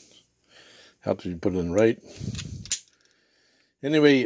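A metal screwdriver bit clicks into its holder.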